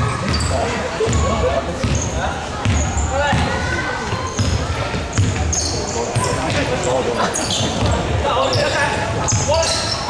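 A basketball bounces on the floor as a player dribbles.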